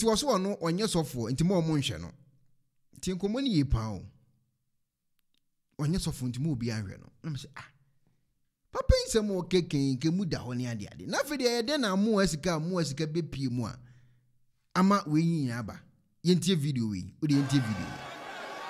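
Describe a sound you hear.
An elderly man speaks loudly and with animation through a microphone, in short bursts.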